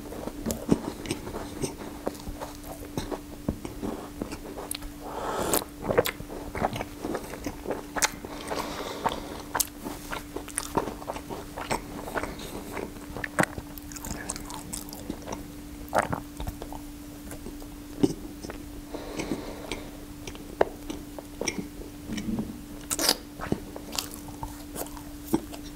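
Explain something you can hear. A man chews and smacks his lips loudly, close by.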